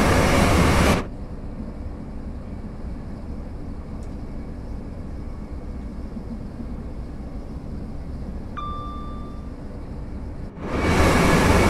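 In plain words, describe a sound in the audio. A train's cab rumbles and hums quietly and steadily.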